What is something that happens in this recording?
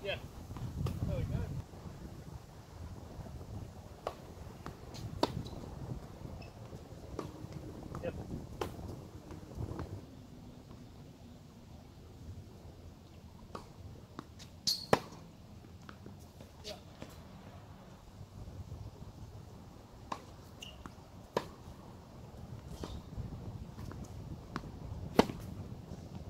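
Tennis balls pop off racquets in a steady rally.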